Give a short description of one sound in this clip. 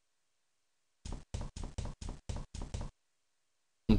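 Footsteps tap across a floor.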